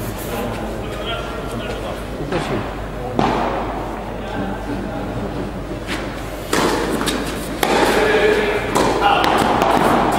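A tennis ball is struck by rackets with sharp pops.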